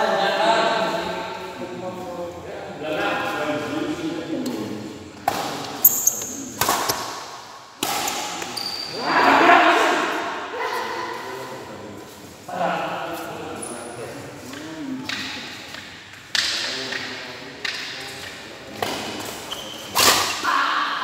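Sneakers squeak and thud on a court floor.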